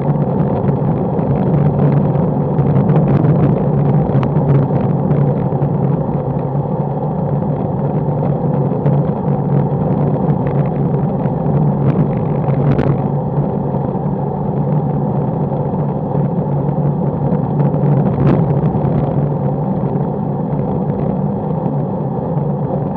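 Wind rushes loudly past, steady throughout.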